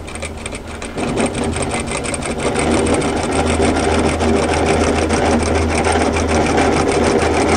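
A sewing machine stitches with a rapid, steady rattle.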